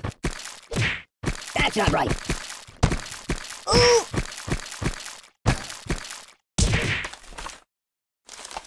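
Repeated thuds and squelches of blows land on a ragdoll.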